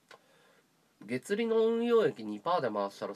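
A man makes a long, drawn-out vocal sound close by.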